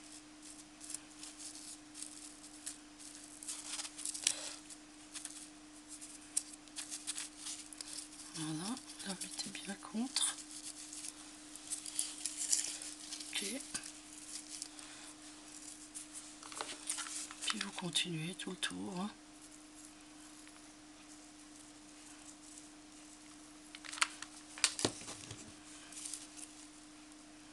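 Rough burlap fabric rustles and scratches up close.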